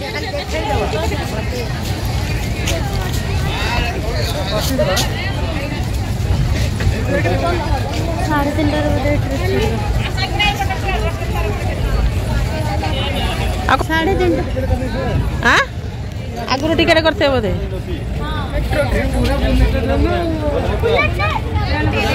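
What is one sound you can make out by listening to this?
A crowd of men, women and children chatters nearby outdoors.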